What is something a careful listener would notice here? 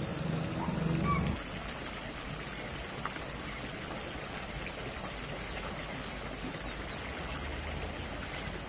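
Ducklings peep with high, quick chirps.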